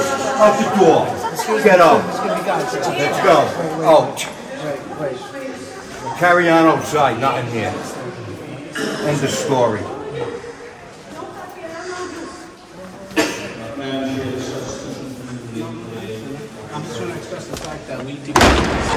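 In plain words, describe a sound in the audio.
Several men and women talk and shout over each other close by, agitated.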